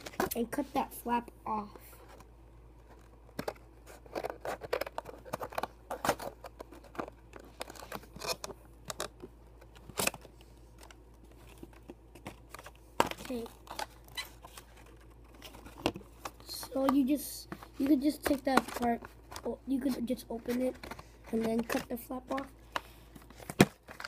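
Scissors snip through stiff cardboard packaging.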